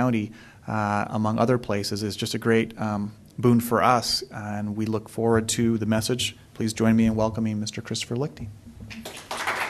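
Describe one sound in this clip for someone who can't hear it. A man speaks steadily into a microphone in an echoing hall.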